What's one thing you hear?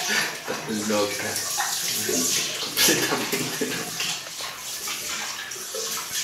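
Water splashes and gurgles in a basin.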